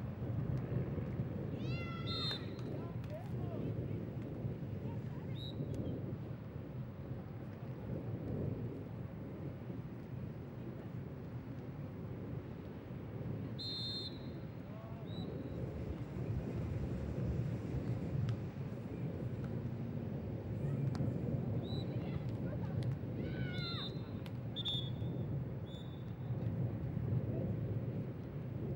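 A crowd of spectators murmurs steadily outdoors.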